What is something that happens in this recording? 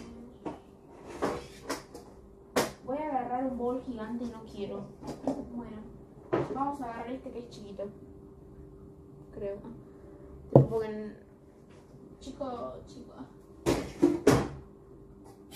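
Containers and objects knock and clatter on a counter.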